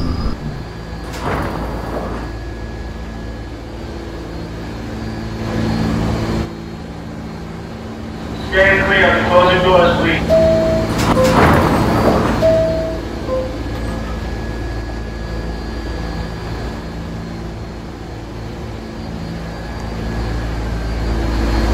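A subway train's motor hums steadily.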